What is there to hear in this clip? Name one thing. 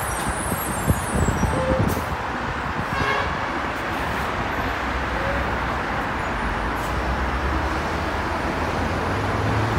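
City traffic roars steadily on a busy road below.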